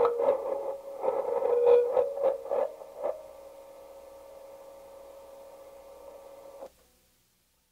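An electric guitar strums loud, distorted chords, then one chord rings out and stops suddenly.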